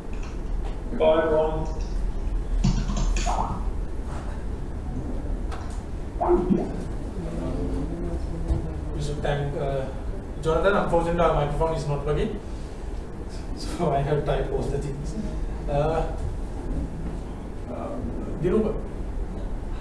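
A man speaks through a microphone in a large echoing hall, pausing between phrases.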